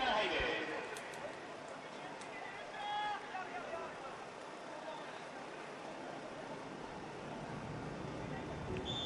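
A crowd murmurs and calls out across an outdoor stadium.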